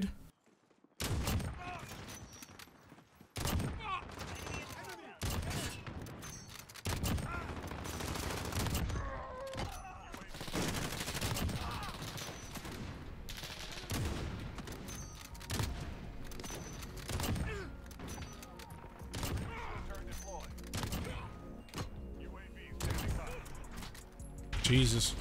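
Sniper rifle shots crack loudly, one after another.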